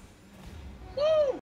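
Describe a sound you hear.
A goal explosion bursts loudly in a video game.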